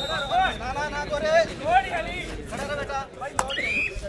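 A young man chants rapidly and breathlessly without pause.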